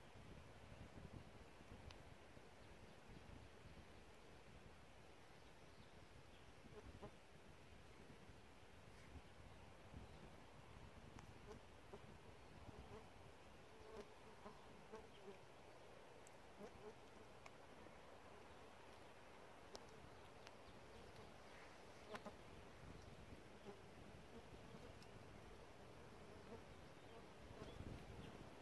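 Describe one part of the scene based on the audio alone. Wind rustles the leaves of nearby branches outdoors.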